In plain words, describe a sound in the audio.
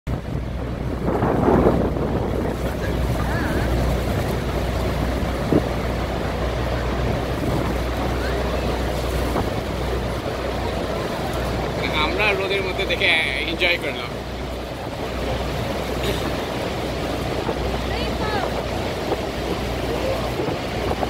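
A waterfall roars steadily nearby.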